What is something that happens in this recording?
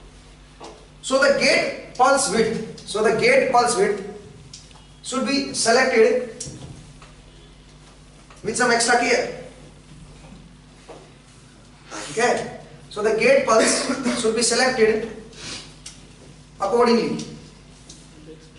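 A young man lectures in short bursts with pauses.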